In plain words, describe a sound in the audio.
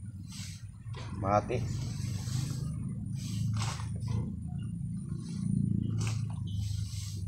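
A man scrapes and rustles soil in a pot with his hands.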